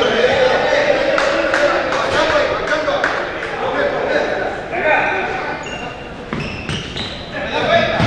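Young men shout to each other in a large echoing gym.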